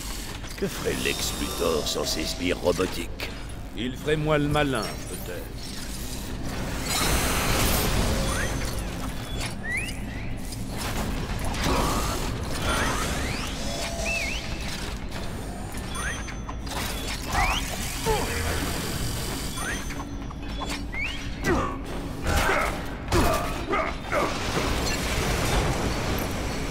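Game sound effects zap and chime.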